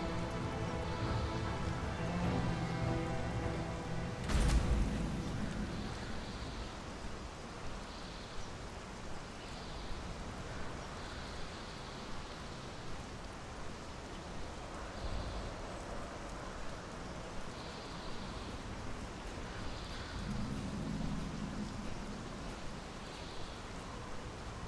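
Large wings flap steadily in the wind.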